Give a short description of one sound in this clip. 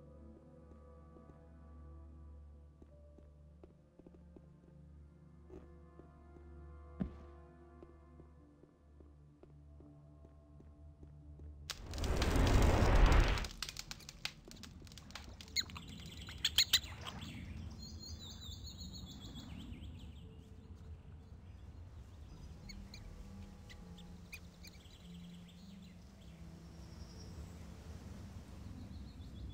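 Footsteps patter on the ground.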